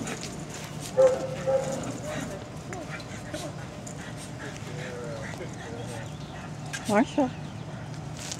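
A small dog whines briefly.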